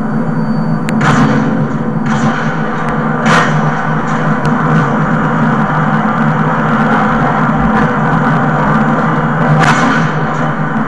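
Gunshots from a video game crack through a television speaker.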